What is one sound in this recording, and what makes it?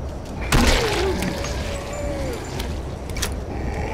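A gun clicks and clatters as it is swapped for another.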